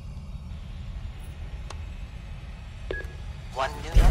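A button clicks on an answering machine.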